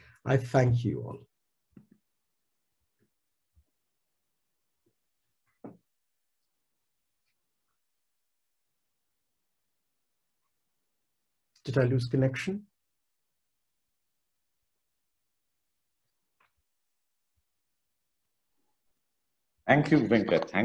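A middle-aged man speaks calmly through an online call, with short pauses.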